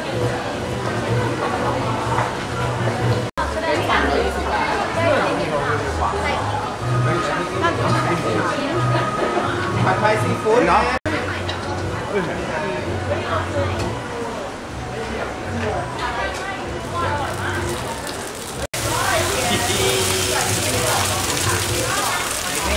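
A crowd chatters all around.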